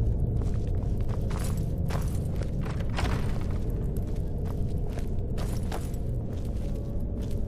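Footsteps fall on stone.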